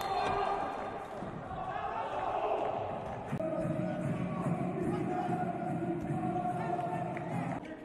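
Men shout and cheer in a large echoing hall.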